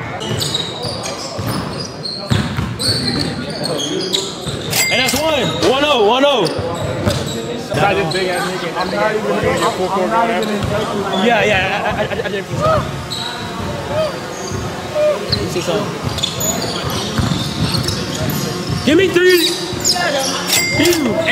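Young people shout and cheer nearby.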